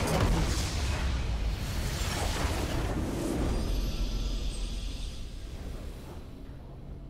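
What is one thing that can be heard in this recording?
Game spell blasts and explosions crash loudly.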